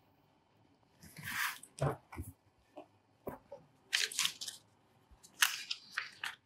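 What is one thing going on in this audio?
Papers rustle as a young woman handles them on a desk.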